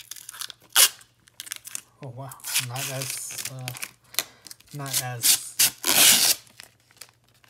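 Plastic film crinkles as it is peeled off.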